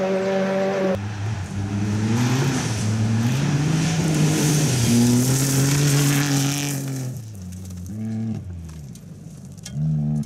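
A rally car engine revs up and down through gear changes as it drives past.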